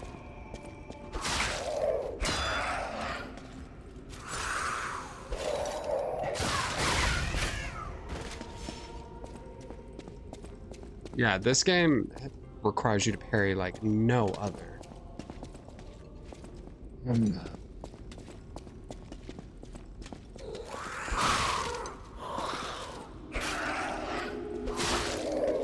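Swords clash and slash in quick strikes.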